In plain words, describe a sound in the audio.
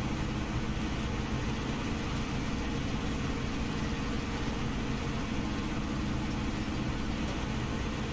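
A heavy truck engine rumbles steadily as the truck drives along.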